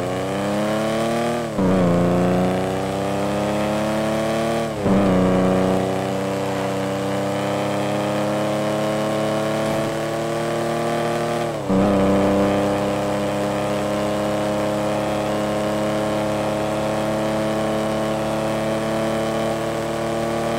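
A small hatchback's engine accelerates, climbing in pitch and dropping at each gear change.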